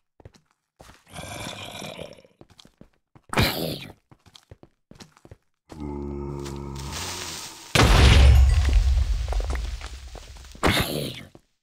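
A zombie groans nearby.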